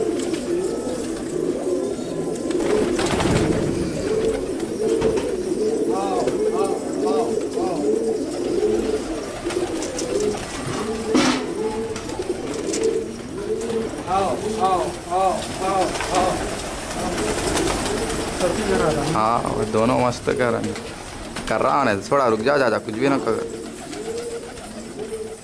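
Pigeons coo steadily close by.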